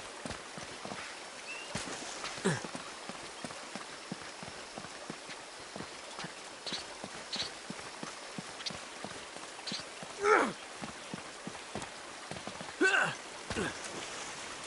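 Footsteps patter quickly over rock.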